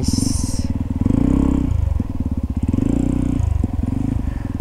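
A motorcycle engine revs up briefly.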